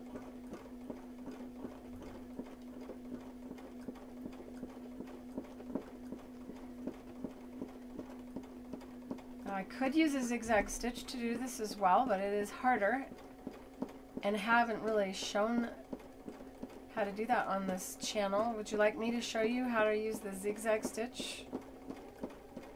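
A sewing machine hums steadily as its needle stitches through fabric.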